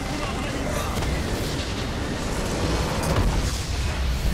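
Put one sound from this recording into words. A large crystal structure shatters with a deep booming crash.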